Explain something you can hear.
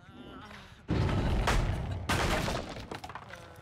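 A wooden pallet cracks and splinters as it is smashed.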